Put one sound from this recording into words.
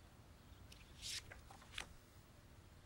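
Photographs rustle in a hand.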